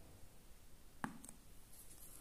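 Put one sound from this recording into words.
A plastic cup is set down on a wooden floor with a light knock.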